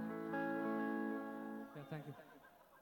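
A band plays a held chord.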